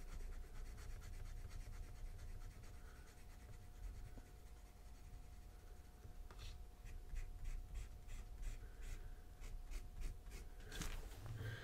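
A pen nib scratches quickly across paper in short strokes.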